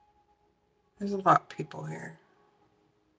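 A young woman speaks briefly and softly, close by.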